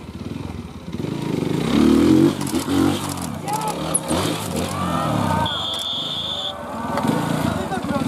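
A motorcycle engine revs hard as the bike climbs.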